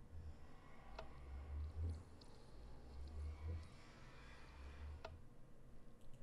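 Molten metal pours with a low bubbling gurgle.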